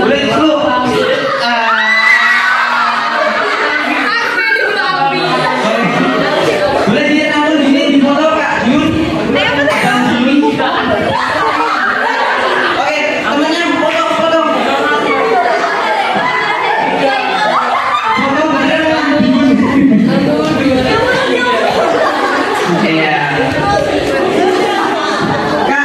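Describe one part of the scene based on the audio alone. Young women laugh and giggle close by.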